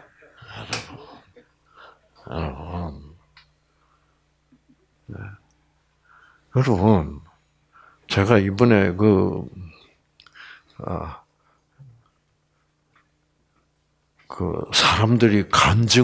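An elderly man speaks through a headset microphone in bursts, with long pauses.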